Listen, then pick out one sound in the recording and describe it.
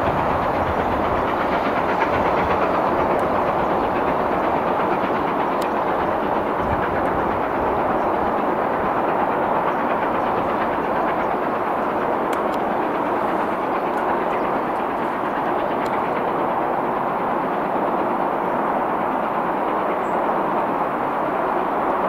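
A diesel locomotive rumbles steadily as it approaches slowly along the track.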